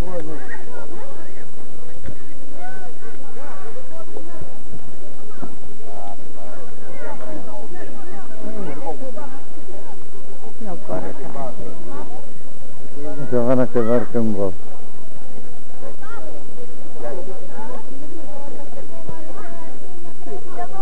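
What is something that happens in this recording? Young men and boys chatter and call out nearby, outdoors.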